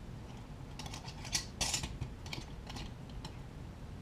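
A metal lid clicks and scrapes as it is twisted on a glass jar.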